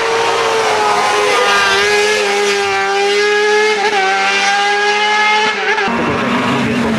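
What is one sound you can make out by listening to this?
A racing car engine screams at high revs as it speeds past.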